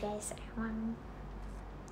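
A young woman speaks briefly and softly close to the microphone.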